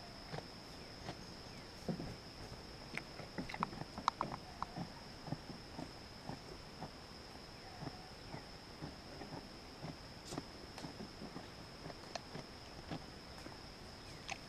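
A goat sniffs and nibbles close to the microphone, with soft bumps and clicks.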